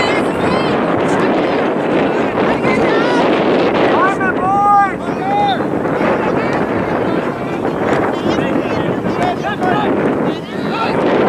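A crowd of spectators shouts and calls out encouragement outdoors.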